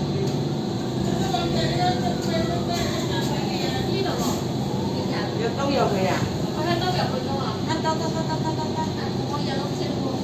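Train brakes squeal with high, gliding whines as the train slows to a stop.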